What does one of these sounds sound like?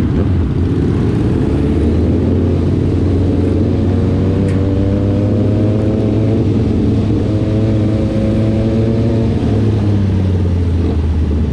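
A motorcycle engine revs up, rising in pitch and then dropping.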